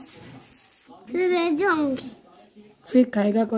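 A little girl squeals loudly in a high voice.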